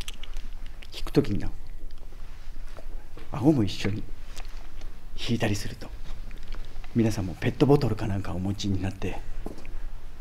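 A man speaks close by with effort, in short bursts.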